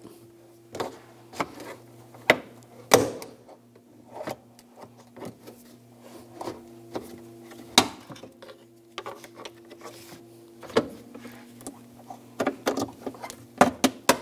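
A plastic trim tool pries and scrapes against a car's plastic panel.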